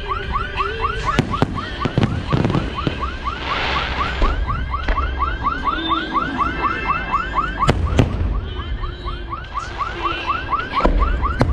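Fireworks crackle and sizzle.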